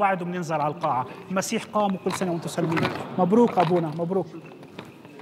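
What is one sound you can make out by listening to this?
An elderly man speaks calmly into a microphone in a large echoing hall.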